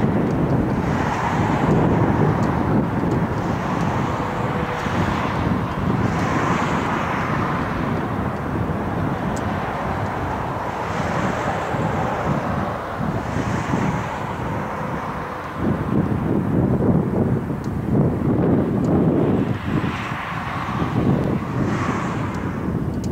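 A jet airliner's engines roar loudly as it lands and rolls away.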